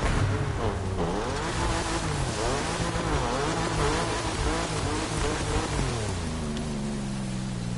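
Water splashes and sprays under tyres.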